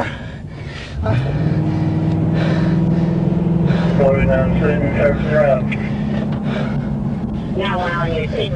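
A car engine hums and rises in pitch as the car pulls away.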